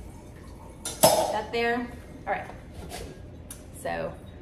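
A metal mixing bowl clanks as it is lifted.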